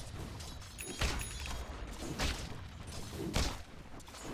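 Magic blasts burst loudly now and then.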